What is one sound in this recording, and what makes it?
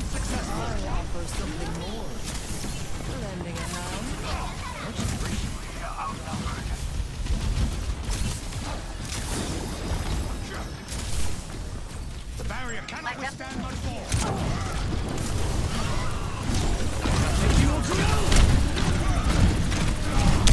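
Energy weapons fire in rapid bursts with crackling blasts.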